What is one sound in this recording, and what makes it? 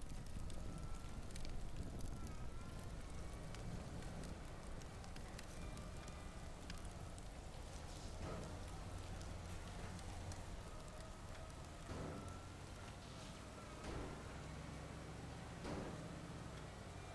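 A fire roars and crackles inside a building.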